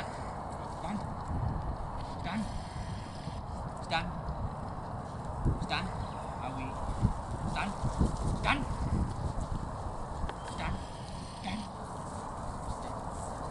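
Wind blows across open ground and rumbles on the microphone.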